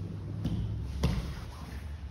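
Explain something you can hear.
A body thumps onto a padded mat.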